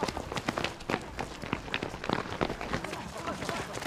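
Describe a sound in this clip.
A crowd of people run and shout in panic.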